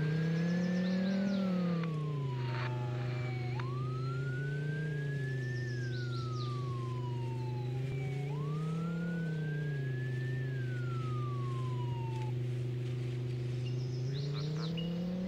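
A vehicle engine hums steadily, rising and falling in pitch.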